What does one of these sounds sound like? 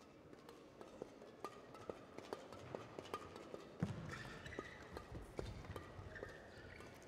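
Rackets strike a shuttlecock in a quick rally.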